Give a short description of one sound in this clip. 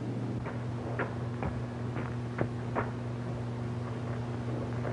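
A man bangs on a door.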